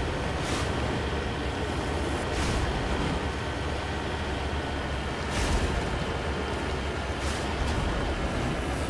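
A vehicle's wheels thump and bounce over rocks.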